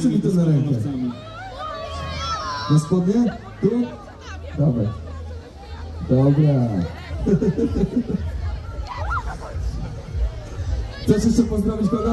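A man speaks with animation through a microphone over loudspeakers.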